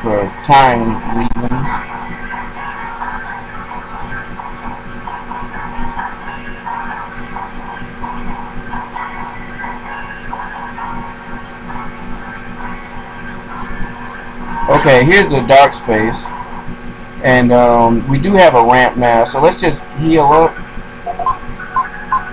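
Calm electronic game music plays steadily.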